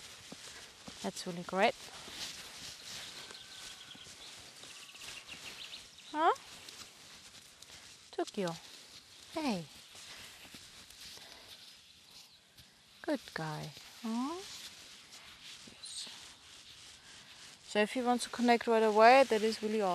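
A young woman talks calmly nearby, outdoors.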